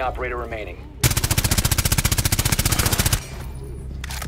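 A rifle fires rapidly in a long burst.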